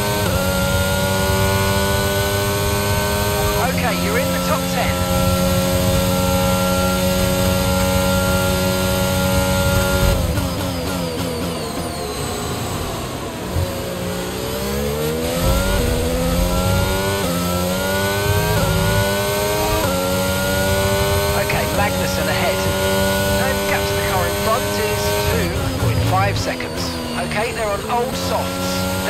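A racing car engine screams at high revs, dropping in pitch as the car slows and climbing again through quick gear changes.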